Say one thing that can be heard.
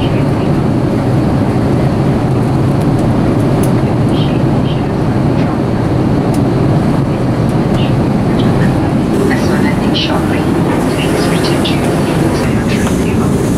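A steady low roar of aircraft engines fills the cabin.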